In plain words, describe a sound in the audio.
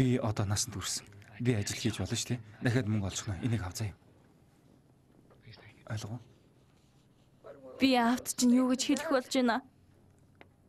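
A young man speaks softly and earnestly up close.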